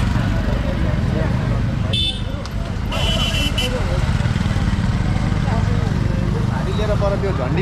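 Several people talk in a crowd outdoors.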